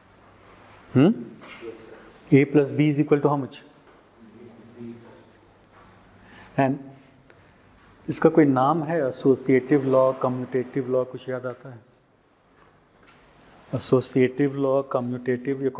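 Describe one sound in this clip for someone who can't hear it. A man speaks calmly into a clip-on microphone, with pauses.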